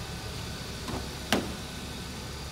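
A car door latch clicks and the door opens.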